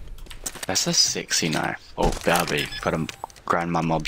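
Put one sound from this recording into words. Electronic keypad buttons beep as a code is typed in.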